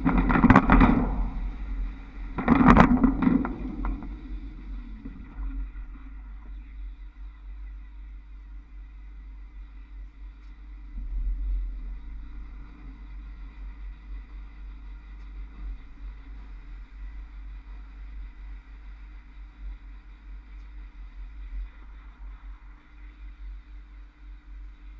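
A trolleybus drives along with a steady low rumble.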